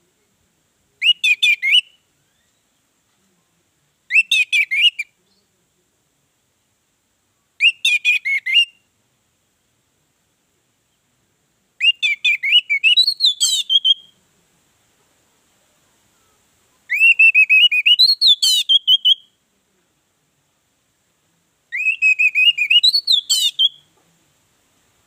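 An orange-headed thrush sings in short, loud bursts of song.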